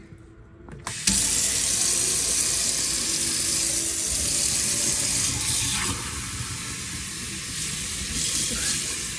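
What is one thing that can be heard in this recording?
Water runs from a tap into a glass in a steel sink.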